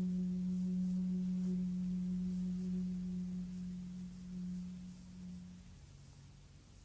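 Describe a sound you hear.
A bamboo flute plays a long, low held note that slowly fades away.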